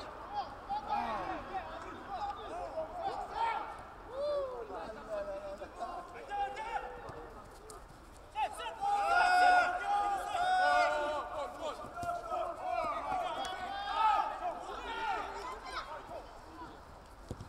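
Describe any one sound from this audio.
Young men shout to each other across an outdoor field.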